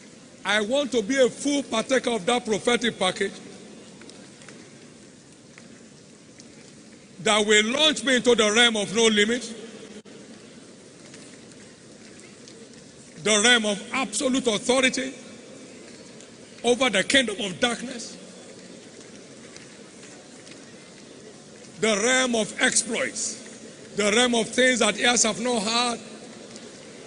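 An elderly man preaches forcefully through a microphone in a large echoing hall, in short bursts.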